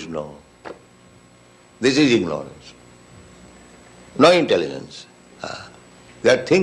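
An elderly man speaks slowly and deliberately in short phrases, with pauses between them.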